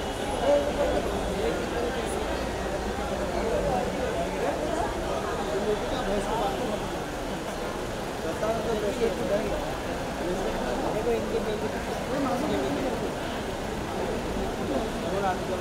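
A crowd of men and women chatter all around, close by.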